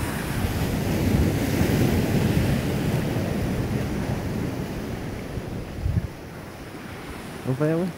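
Sea waves wash against the shore.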